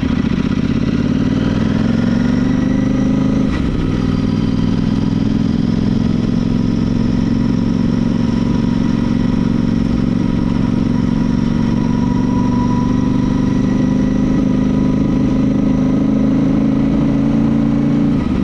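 Tyres roll over rough asphalt.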